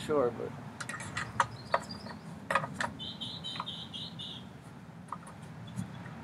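Small metal parts of a lawnmower click and tap.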